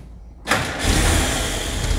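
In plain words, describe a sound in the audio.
An old engine cranks and fires up suddenly.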